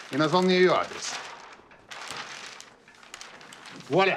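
A large sheet of paper rustles and crackles.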